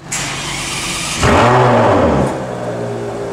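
A V12 Ferrari 599 GTO blips its throttle.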